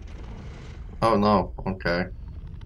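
A large beast growls loudly.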